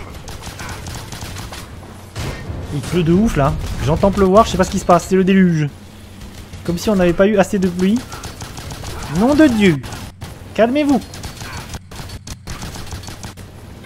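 Gunfire rattles in a video game.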